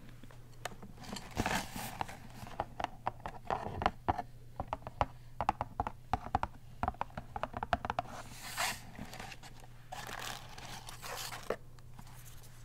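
Fingernails tap and scratch on a cardboard box.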